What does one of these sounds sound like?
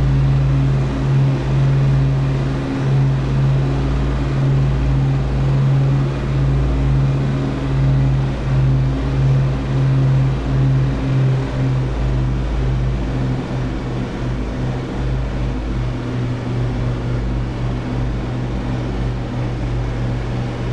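An aircraft engine drones loudly and steadily with a low, throbbing pulse.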